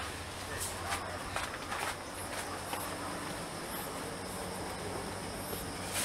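Footsteps climb metal stairs.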